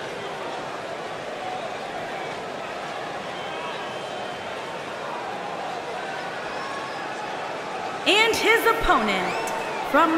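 A large crowd cheers and chatters steadily in a big arena.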